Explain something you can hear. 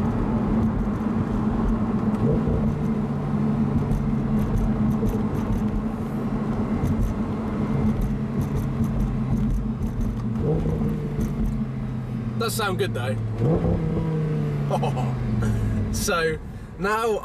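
A car engine drones steadily and shifts pitch as the car accelerates.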